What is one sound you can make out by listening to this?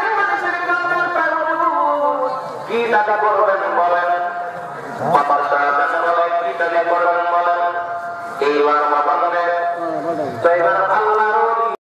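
A man chants in a loud, sustained singing voice through a microphone and loudspeakers, outdoors.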